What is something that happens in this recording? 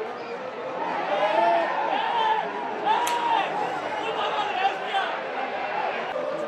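A large crowd cheers in an open stadium.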